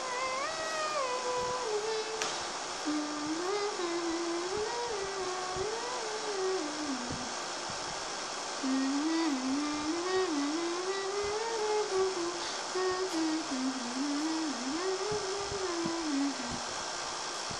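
A young child sings a slow, wavering tune nearby.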